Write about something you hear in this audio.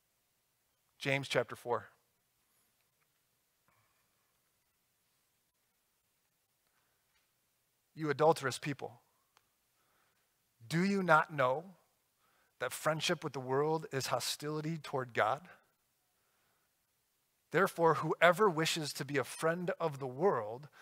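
A man speaks calmly into a microphone, with long pauses.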